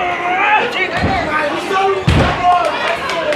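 Wrestlers' bodies slam onto a ring's canvas with heavy thuds.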